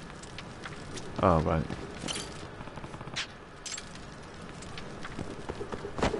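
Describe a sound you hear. Footsteps tap on hard pavement.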